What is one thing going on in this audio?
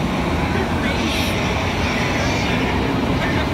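A young girl laughs.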